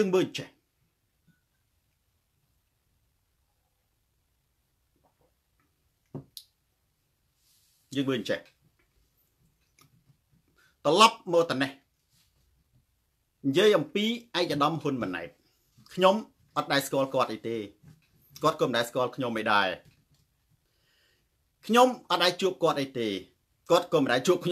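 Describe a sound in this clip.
A man speaks calmly and close to the microphone, with pauses.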